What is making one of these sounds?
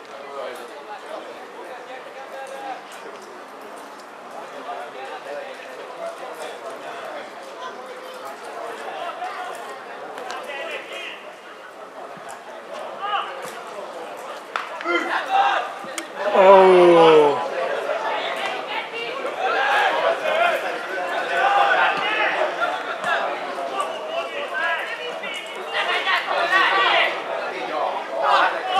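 Footballers shout and call to each other across an open pitch outdoors.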